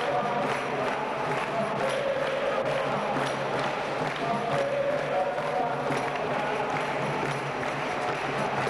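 A musical bow twangs in a steady rhythm.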